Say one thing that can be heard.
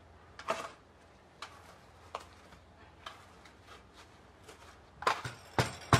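A trowel scrapes across sand.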